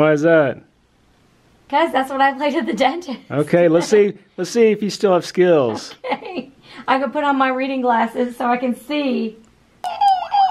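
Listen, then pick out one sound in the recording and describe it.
A woman talks and laughs with animation, close by.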